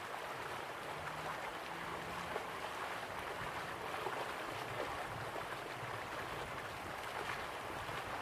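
A stream rushes over rocks.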